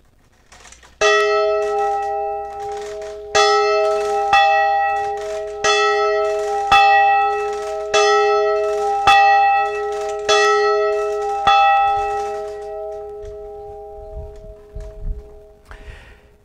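A large bell rings out loudly in repeated strokes, its tone ringing on between them and slowly fading.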